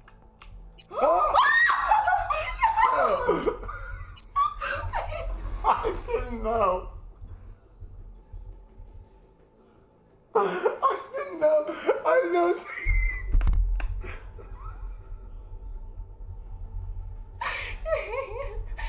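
A young woman talks and laughs excitedly into a microphone.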